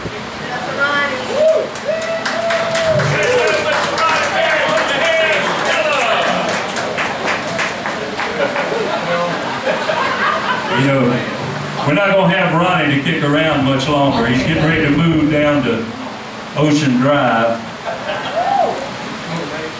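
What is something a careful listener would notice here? A man sings into a microphone over loudspeakers.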